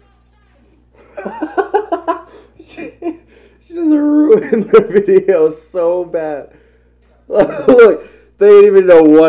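A young man talks and laughs with animation, close by.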